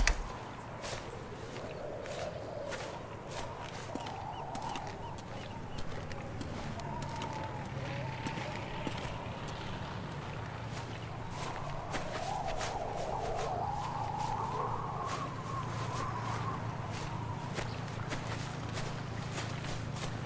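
Footsteps crunch softly over grass and stone.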